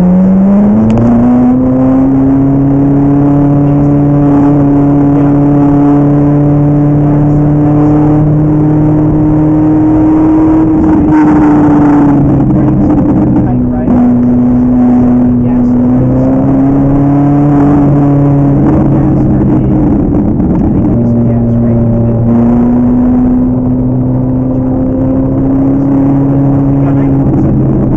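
A car engine roars loudly, rising and falling in pitch as the driver shifts gears.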